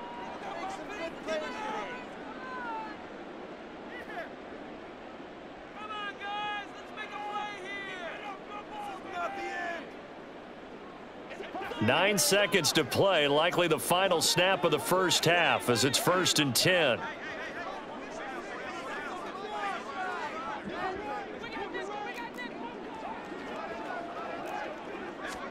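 A large stadium crowd murmurs and cheers throughout.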